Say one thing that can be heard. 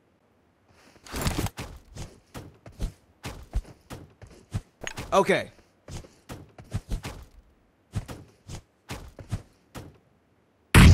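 Footsteps run and shuffle quickly over grass.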